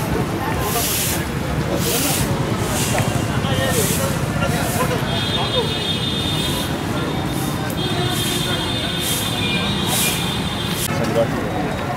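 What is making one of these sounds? Brooms sweep leaves with rhythmic swishes.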